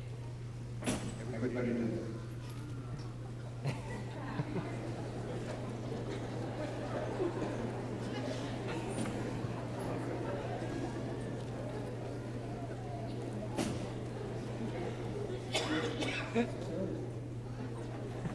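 An elderly man speaks with animation through a microphone in a large echoing hall.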